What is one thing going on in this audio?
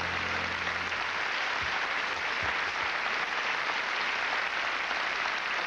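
A large audience applauds loudly in a big hall.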